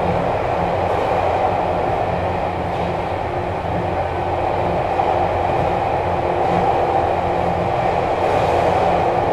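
An electric train hums and rumbles steadily as it runs.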